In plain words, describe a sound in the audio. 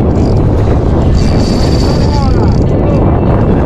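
A fishing reel whirs as its handle is cranked.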